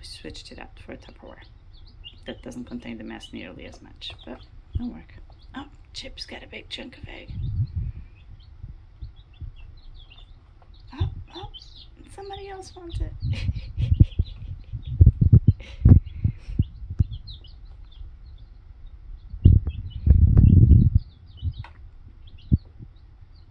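Chicks peep and chirp close by.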